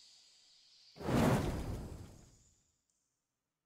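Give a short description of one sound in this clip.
A fireball bursts with a loud roar.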